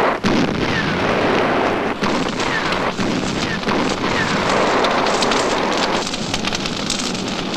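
Explosions boom one after another.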